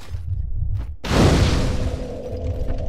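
A fire bursts alight with a loud whoosh.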